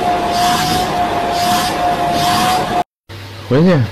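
A vacuum cleaner hums with a steady whine.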